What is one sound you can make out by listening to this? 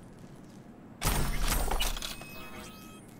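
A metal case lid clanks open.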